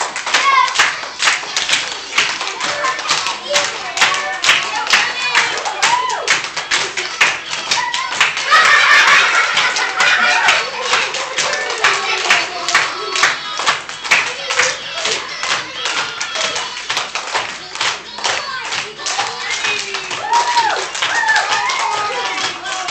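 Young children call out and chatter excitedly.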